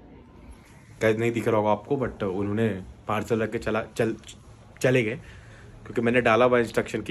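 A young man talks with animation close to a phone microphone.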